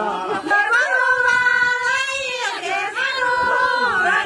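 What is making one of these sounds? Several women sing together loudly.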